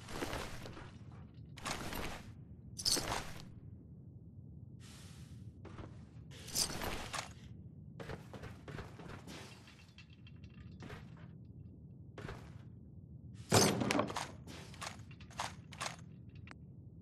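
Short rustling, clinking bursts come as gear is picked up from bodies and a container.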